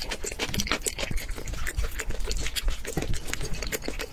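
A spoon scrapes against a ceramic bowl.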